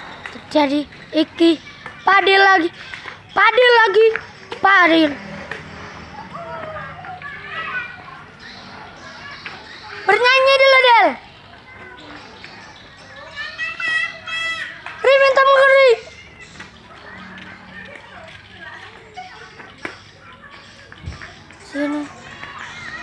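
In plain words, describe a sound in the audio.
Young boys shout and call out loudly outdoors.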